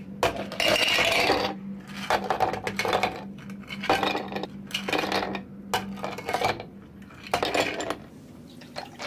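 Ice cubes clatter as they are scooped into glasses.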